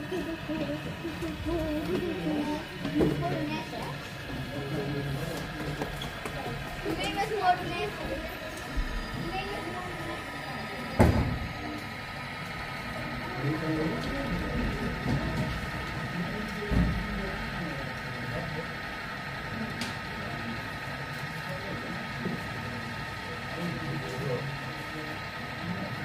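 A model train hums and clatters along its rails.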